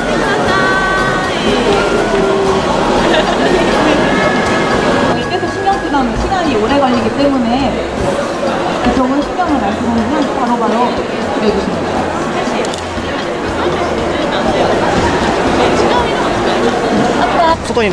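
A crowd chatters in the background of a busy hall.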